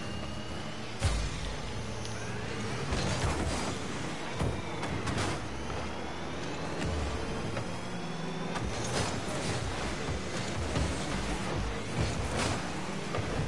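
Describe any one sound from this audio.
A ball is struck with loud thumps.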